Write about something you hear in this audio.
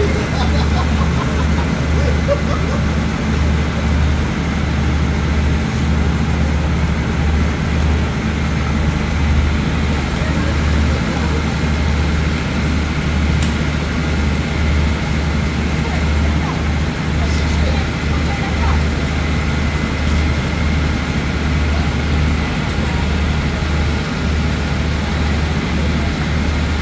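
A diesel train engine idles with a steady low hum.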